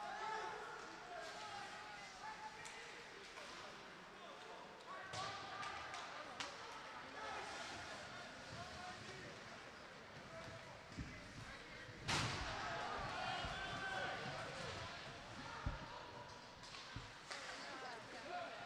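A crowd of spectators murmurs in an echoing rink.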